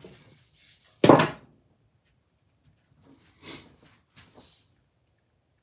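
Metal tools clink and clatter as a man handles them.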